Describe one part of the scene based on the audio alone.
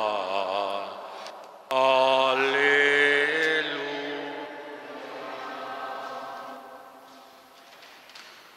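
A man sings a slow chant that echoes in a large hall.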